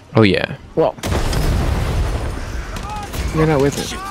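A loud explosion booms and roars.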